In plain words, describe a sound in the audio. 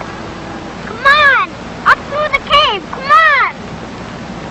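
A young boy calls out loudly in short, high cries.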